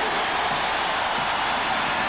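A young man in a crowd shouts excitedly.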